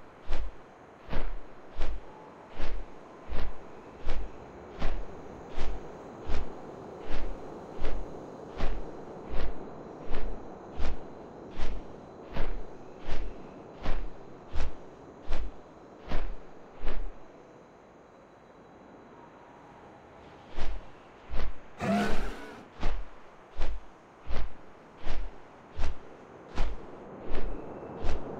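Large wings beat in steady, heavy flaps.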